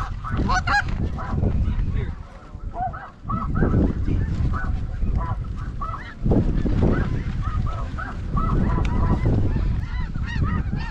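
A large flock of snow geese calls overhead.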